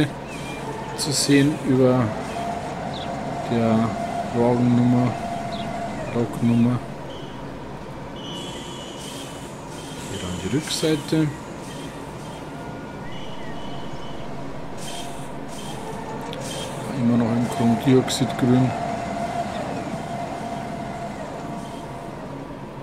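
An electric locomotive hums steadily.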